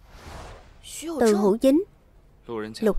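A young woman speaks firmly, close by.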